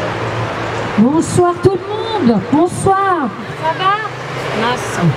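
A young woman sings loudly into a microphone.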